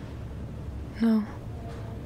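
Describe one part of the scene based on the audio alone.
A young woman answers quietly and briefly, close by.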